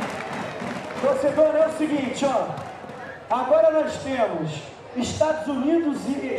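A large crowd chants loudly in unison.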